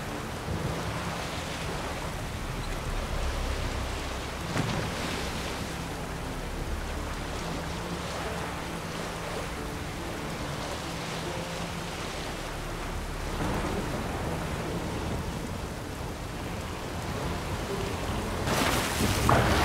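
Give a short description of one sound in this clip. Waves crash against a wooden boat.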